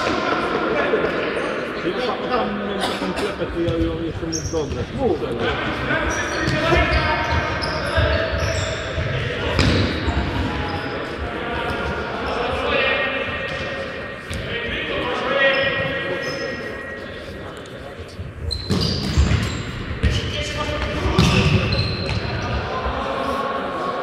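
A futsal ball is kicked with sharp thuds in an echoing sports hall.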